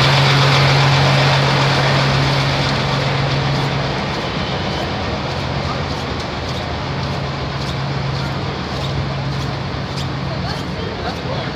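A truck engine idles nearby with a low steady rumble.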